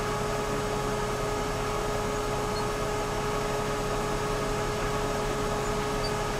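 A diesel excavator engine rumbles steadily.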